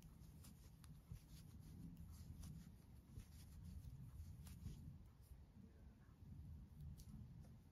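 A metal crochet hook clicks softly against yarn.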